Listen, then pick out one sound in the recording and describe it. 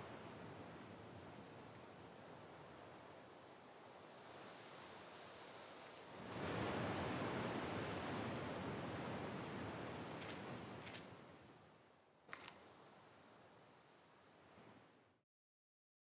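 Waves wash steadily onto a shore.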